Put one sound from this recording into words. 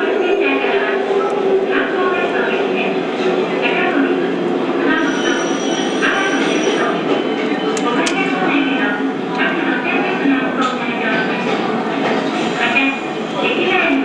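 A tram rumbles steadily along its tracks.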